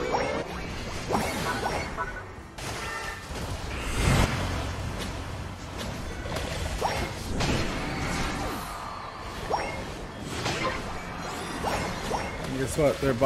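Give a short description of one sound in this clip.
Game effects whoosh, zap and chime in quick bursts.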